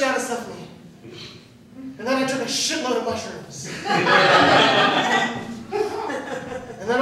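A young man speaks with animation on a stage, in a room with a slight echo.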